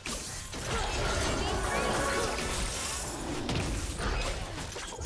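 Game spells crackle and burst in quick succession.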